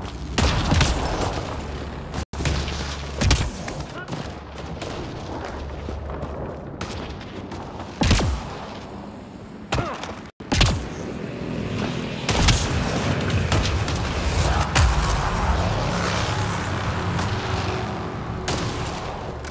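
Heavy footsteps crunch on rocky ground.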